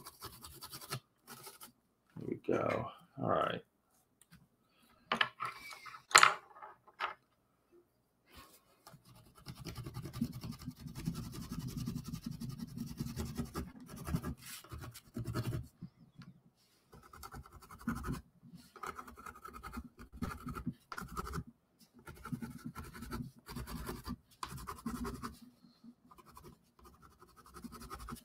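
A pencil scratches across a board.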